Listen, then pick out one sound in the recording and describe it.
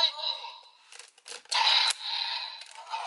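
Plastic toy parts click and clack together.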